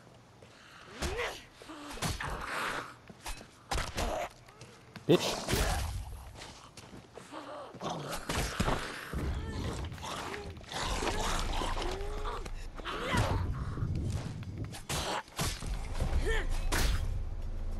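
A cleaver hacks into flesh with wet thuds.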